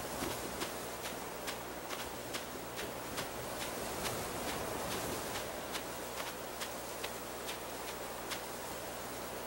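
Light, quick footsteps patter across grass.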